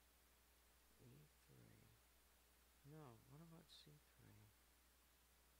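A man speaks calmly and briefly into a close microphone.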